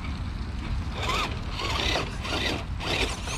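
Plastic tyres crunch and scrape over rocks and dirt.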